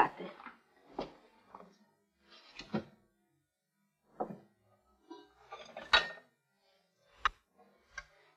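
Dishes clink as a woman handles crockery.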